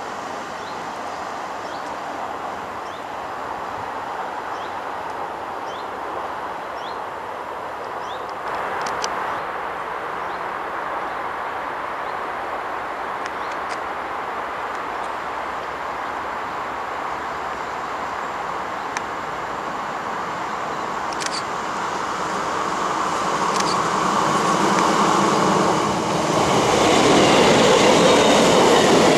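A diesel train rumbles as it approaches and passes close by, growing louder.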